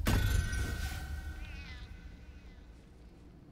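A magical spell chimes and shimmers, then fades.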